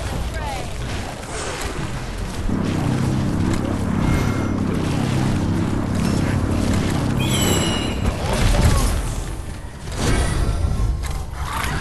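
Fantasy battle game effects crash and whoosh as spells and weapons strike.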